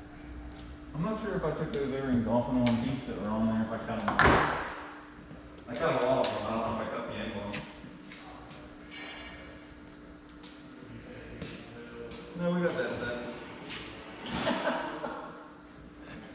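Men talk in a large echoing hall.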